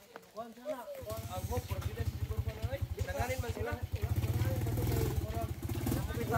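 A motorcycle engine idles and revs up close.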